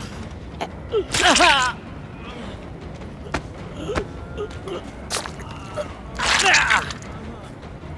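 A young woman screams in pain.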